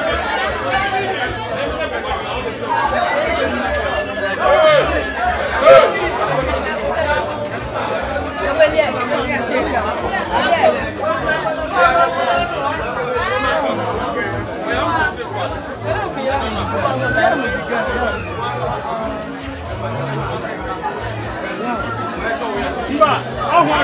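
A crowd of young women and girls chatters and talks over one another nearby.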